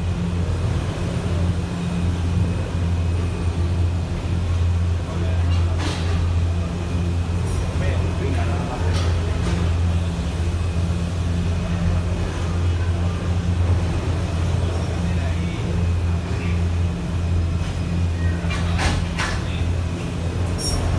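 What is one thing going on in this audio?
A cable car cabin rolls slowly with a steady low mechanical hum.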